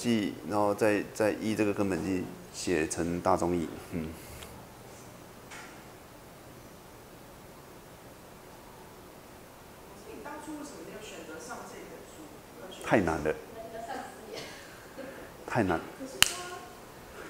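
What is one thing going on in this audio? A middle-aged man lectures calmly through a microphone, with pauses.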